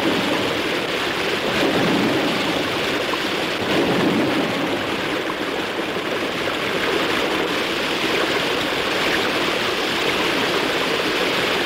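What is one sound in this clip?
Water rushes and splashes down a wooden chute in a strong, steady gush.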